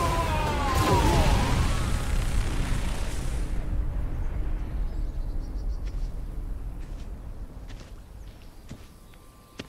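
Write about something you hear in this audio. A powerful blast explodes with a deep, rolling rumble that slowly fades.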